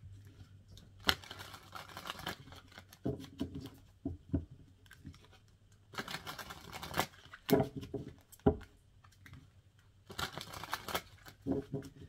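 Playing cards are shuffled in short, crisp bursts.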